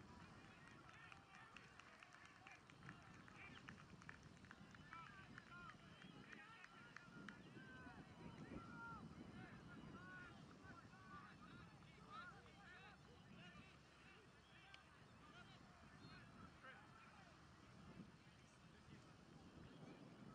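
Young men talk and call out to each other across an open field.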